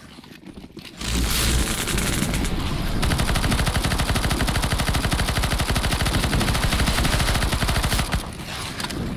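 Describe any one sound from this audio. A rifle fires rapid automatic bursts at close range.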